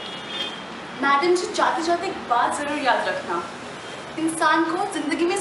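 A young woman speaks clearly and with animation into a microphone, close by.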